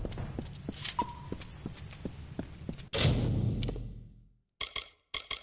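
A warrior's footsteps thud across stone.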